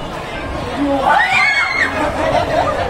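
A young woman shrieks in surprise.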